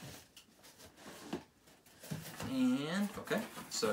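A cardboard box scrapes and thumps onto a table.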